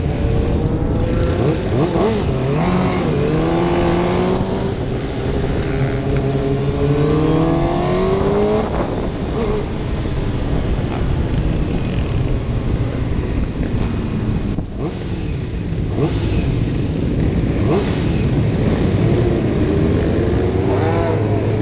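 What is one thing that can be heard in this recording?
Wind rushes loudly past a motorcycle rider's helmet.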